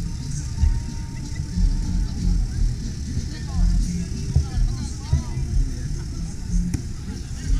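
A crowd of young men and women chatters in the distance.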